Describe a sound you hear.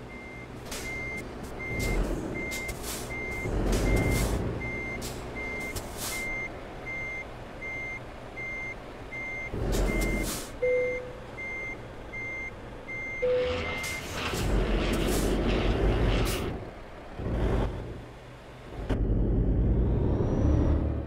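A diesel truck engine idles.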